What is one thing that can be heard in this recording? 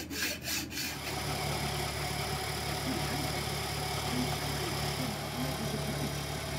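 A metal lathe runs with a steady hum.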